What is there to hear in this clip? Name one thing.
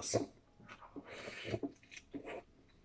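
A man bites into a sandwich.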